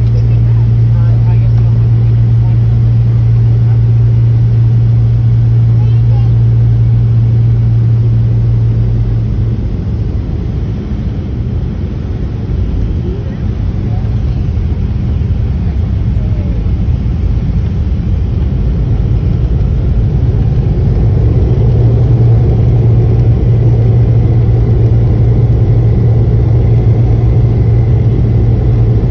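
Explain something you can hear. A jet engine drones steadily, heard from inside an aircraft cabin.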